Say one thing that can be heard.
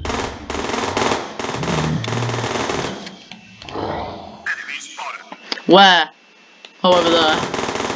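Rapid gunfire crackles in bursts.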